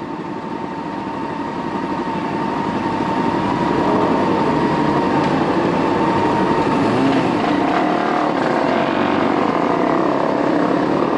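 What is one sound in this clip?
Other motorcycle engines rev and ride off nearby.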